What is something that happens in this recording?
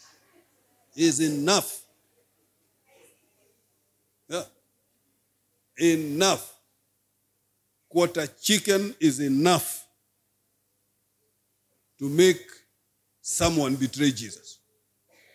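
A man speaks slowly and deliberately into a microphone, in short phrases with pauses.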